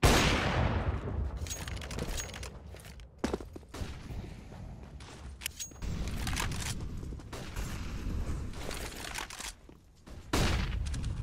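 Footsteps thud on stone as a game character runs.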